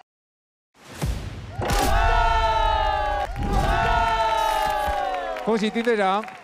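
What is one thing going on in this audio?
A young man cheers and shouts with excitement.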